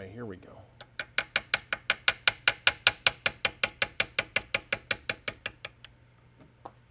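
A small hammer taps rapidly on a metal punch.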